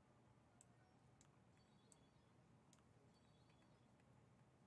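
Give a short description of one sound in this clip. Short electronic chimes and clicks ring out.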